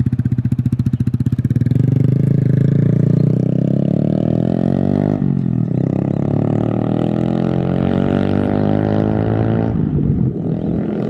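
A small motorbike engine revs and whines as it passes.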